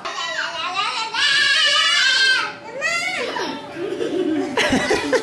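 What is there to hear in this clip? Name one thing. A young girl shouts loudly.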